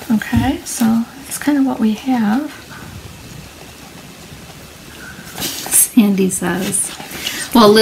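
Damp paper rustles softly as it is peeled up and lifted.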